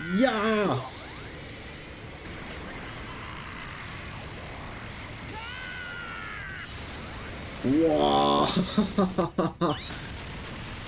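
A man shouts excitedly into a microphone.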